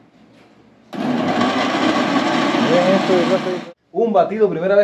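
A blender whirs loudly.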